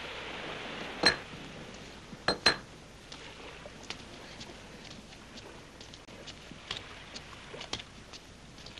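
Bricks knock sharply against each other.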